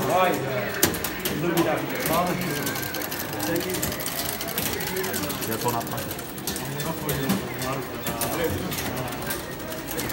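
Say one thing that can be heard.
An arcade game makes sharp electronic sound effects.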